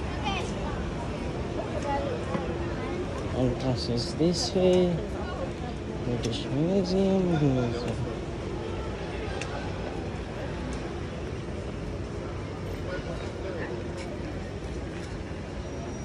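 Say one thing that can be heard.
Traffic hums steadily along a city street.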